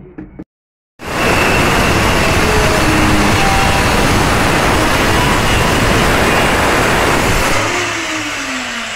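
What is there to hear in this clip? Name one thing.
An electric drill whirs loudly and steadily, then winds down.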